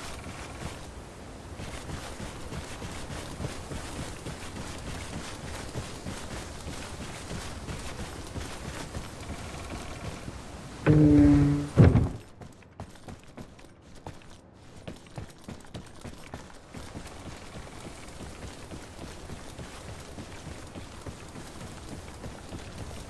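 Footsteps crunch steadily on grass and gravel.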